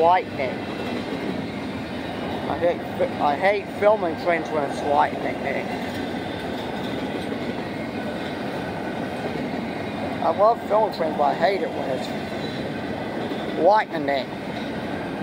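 Train wheels squeal on the rails in short bursts.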